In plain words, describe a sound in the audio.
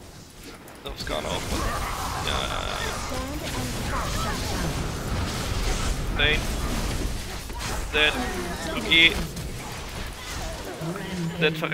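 Magic blasts and impacts crash in a busy fight.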